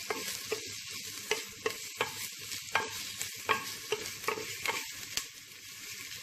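A wooden spoon knocks and scrapes against the inside of a clay pot.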